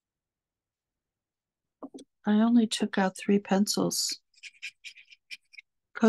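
A marker scratches lightly on paper.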